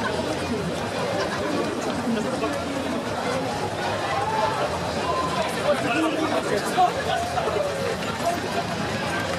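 A crowd of people talks and cheers outdoors.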